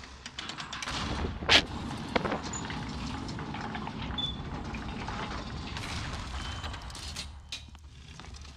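A wooden lift rumbles and creaks as it descends.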